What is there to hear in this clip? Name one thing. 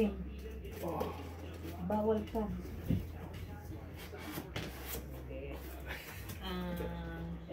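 Paper and cardboard rustle as a box is handled.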